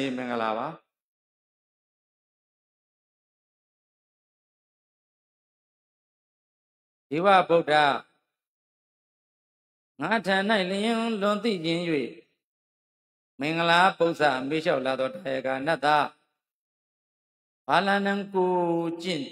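A middle-aged man speaks calmly into a microphone, in slow phrases with long pauses.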